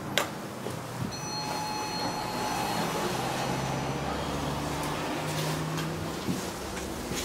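Elevator doors slide open with a rumble.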